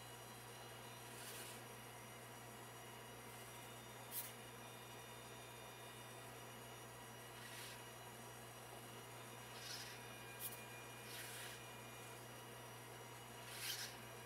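Small motors whir and click softly as a robotic face moves.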